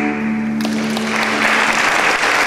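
A harp plays a few plucked notes in a large echoing hall.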